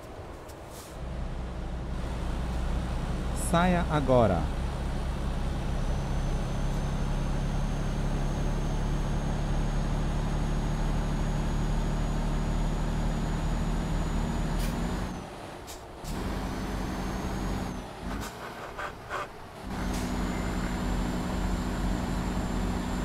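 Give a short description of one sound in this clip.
A heavy diesel truck engine drones as the truck cruises down a road.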